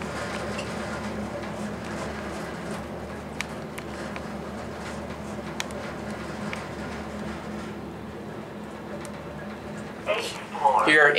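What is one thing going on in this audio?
An elevator car hums steadily as it rises.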